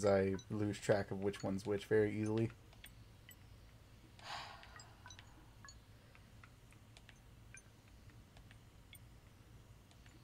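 Keypad buttons click softly, one after another.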